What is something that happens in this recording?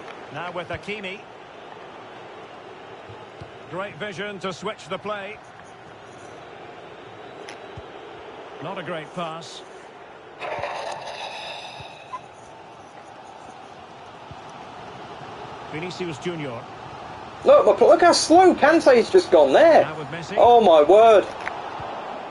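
A young man talks with animation close to a microphone, at times loudly and excitedly.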